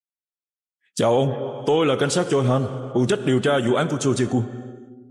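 A man speaks in a tense voice, close by.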